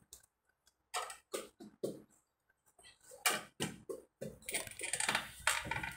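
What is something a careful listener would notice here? Hands tap and handle a phone.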